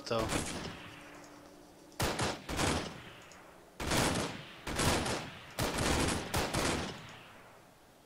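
Rifle shots ring out one after another, each echoing away.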